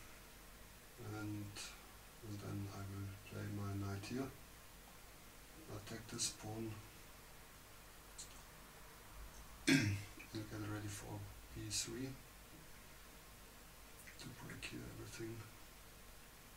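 A middle-aged man talks calmly into a microphone, commentating.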